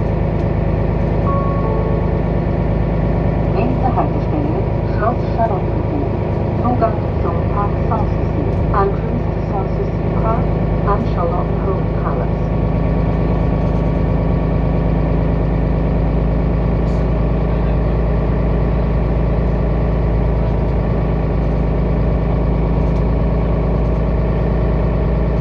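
Tyres roll over the road surface.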